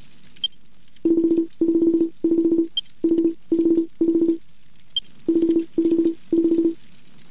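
Short electronic beeps chatter in quick bursts as dialogue text prints out.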